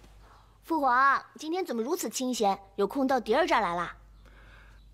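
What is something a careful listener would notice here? A young woman speaks brightly up close.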